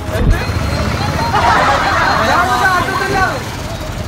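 Young women talk with animation close by.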